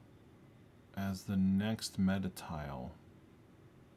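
A man speaks briefly and calmly close to a microphone.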